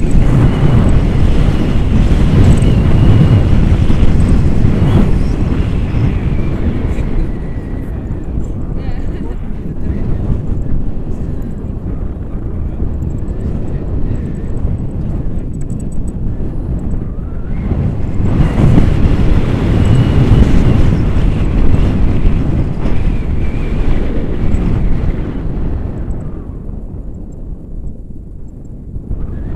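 Wind rushes and buffets loudly against a microphone.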